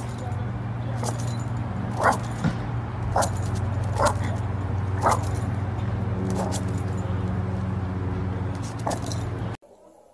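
A small dog barks repeatedly in sharp yaps outdoors.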